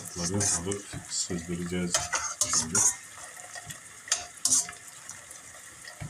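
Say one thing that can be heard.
Water drips and splashes from a ladle back into a pot.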